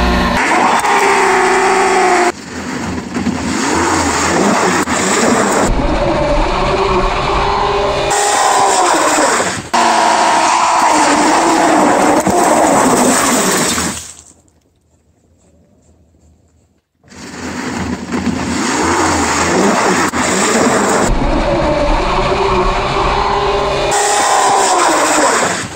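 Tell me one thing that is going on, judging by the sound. A tyre screeches as it spins on pavement.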